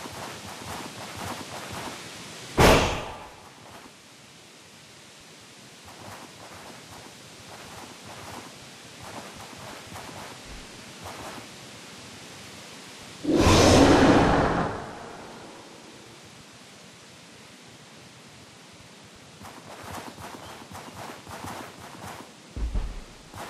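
Small paws patter softly over grass.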